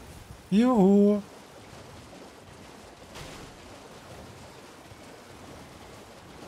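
Water splashes as a horse wades through a shallow stream.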